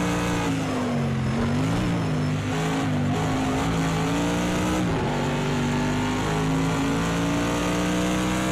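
A racing car engine roars loudly, its pitch rising and falling as the gears shift.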